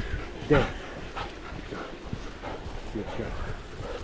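A stream babbles over stones nearby.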